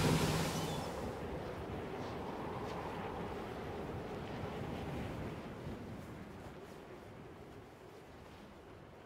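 Wind rushes softly past a descending glider.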